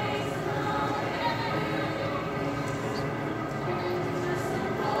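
A choir of young men and women sings together in a large room.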